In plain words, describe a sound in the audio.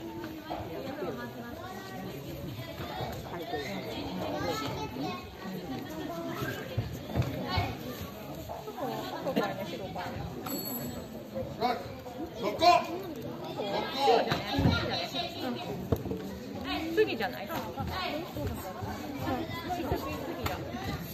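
Young children shout sharply in a large echoing hall.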